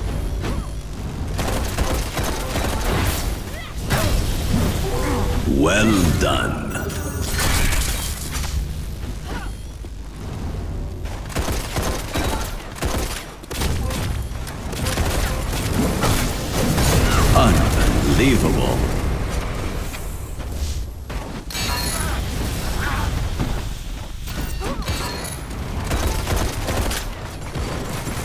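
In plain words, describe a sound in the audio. Energy weapons fire in a video game.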